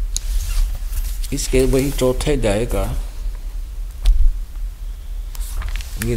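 Paper pages rustle as a book is leafed through.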